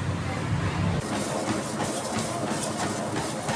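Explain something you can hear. Footsteps thump on a running treadmill belt.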